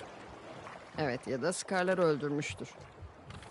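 A young woman answers quietly nearby.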